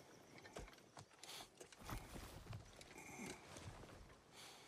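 Metal armour clanks as a man kneels and rises.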